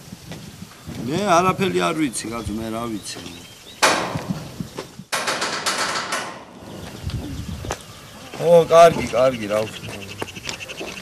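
A man talks loudly into a phone outdoors.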